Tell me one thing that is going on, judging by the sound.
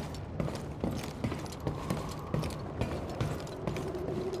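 Footsteps tread on a metal floor.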